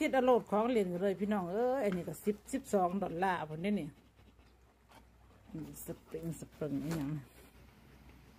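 A dog whines and howls up close.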